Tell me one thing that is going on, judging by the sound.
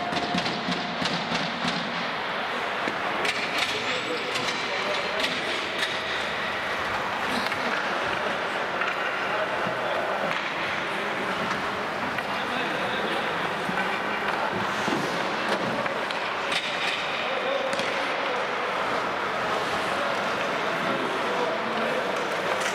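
Skate blades scrape and hiss on ice.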